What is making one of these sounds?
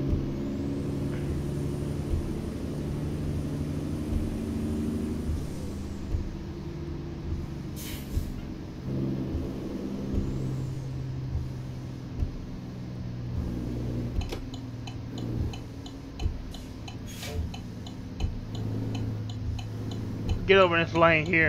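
A truck engine drones steadily, rising and falling in pitch.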